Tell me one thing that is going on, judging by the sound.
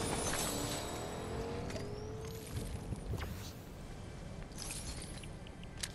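A pickaxe swings with sharp whooshes and knocks.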